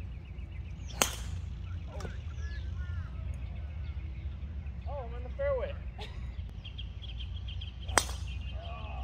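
A golf club strikes a ball with a sharp, ringing crack.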